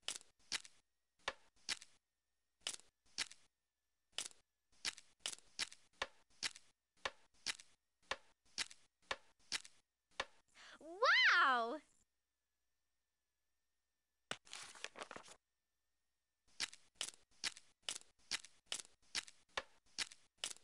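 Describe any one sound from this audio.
Puzzle pieces click into place again and again.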